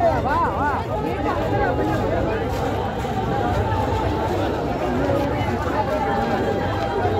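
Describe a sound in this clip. A large crowd of people chatters loudly outdoors nearby.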